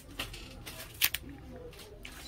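A phone is turned over in a hand with a light tap.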